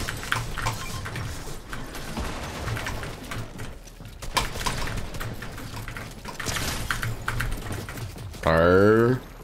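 Rapid clicks and pops of video game effects sound in quick bursts.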